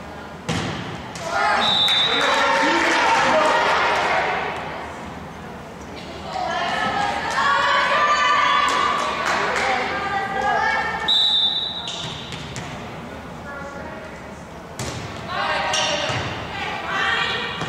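Young girls shout and cheer in a large echoing hall.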